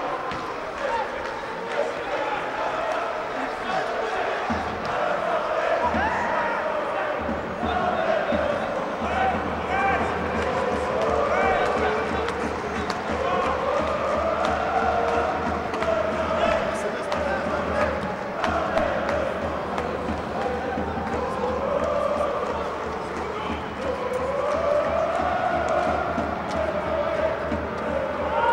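A crowd of spectators talks and calls out nearby.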